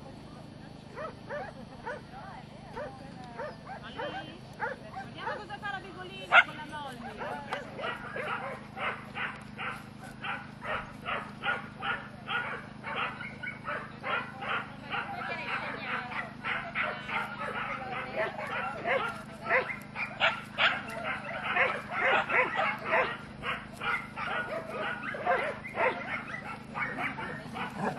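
Several dogs bark excitedly and repeatedly outdoors.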